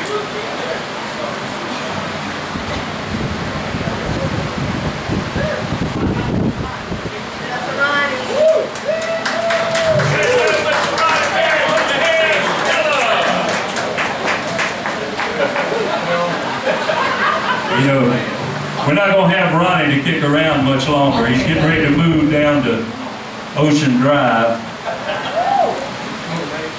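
A live band plays amplified music in a large room.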